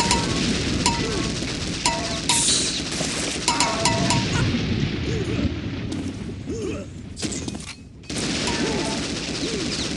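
A laser gun fires with a buzzing hum.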